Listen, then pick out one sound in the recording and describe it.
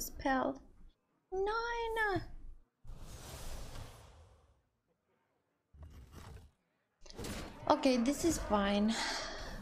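A young woman speaks expressively into a close microphone, her voice rising and falling.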